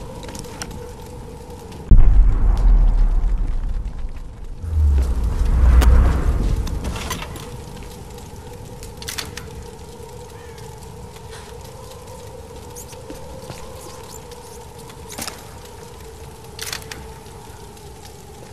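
Footsteps crunch on rubble.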